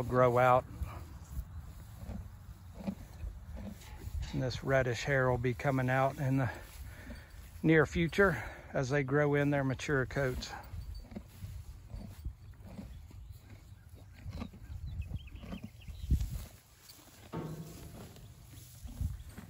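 Horses munch on hay.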